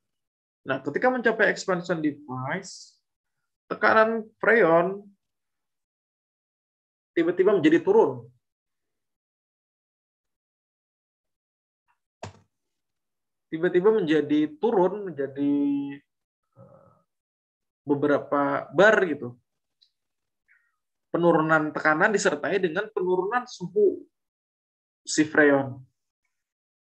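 A man speaks calmly in short phrases through an online call, with pauses in between.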